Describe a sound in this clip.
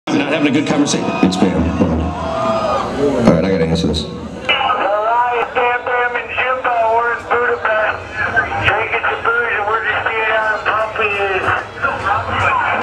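A live band plays loudly.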